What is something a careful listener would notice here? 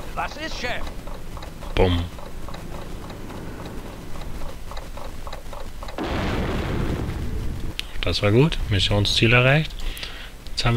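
A man talks casually into a microphone.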